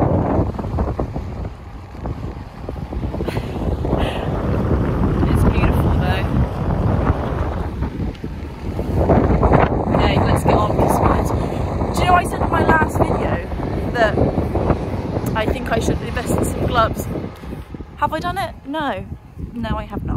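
Wind buffets the microphone outdoors.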